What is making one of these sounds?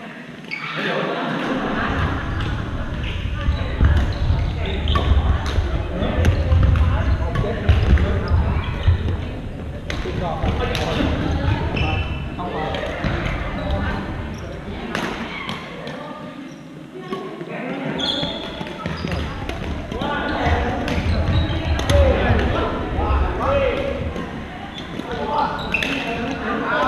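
Shuttlecocks are struck with rackets in a large echoing gym.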